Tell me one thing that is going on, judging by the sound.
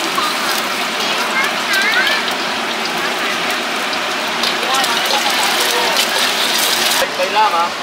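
An egg sizzles in hot oil.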